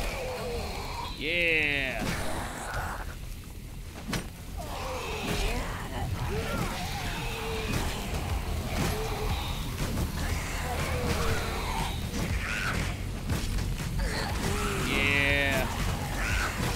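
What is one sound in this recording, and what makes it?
A zombie snarls and groans.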